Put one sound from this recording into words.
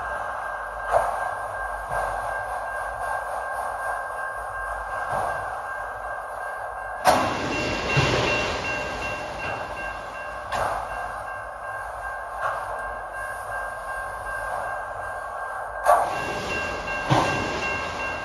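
Train wheels clank loudly over rail joints now and then.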